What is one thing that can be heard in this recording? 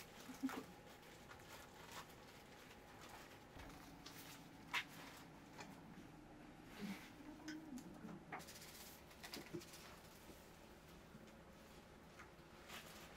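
Paper rustles and crinkles as hands lay out sheets.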